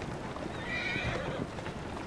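Horse hooves clop on a stone street.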